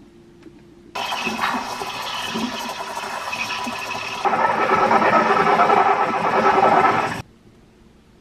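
A steam wand hisses and gurgles loudly as it froths milk.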